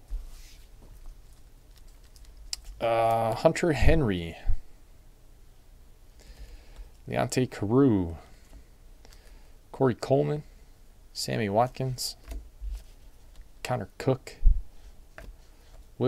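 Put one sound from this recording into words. Plastic-sleeved trading cards click and rustle as they are shuffled by hand.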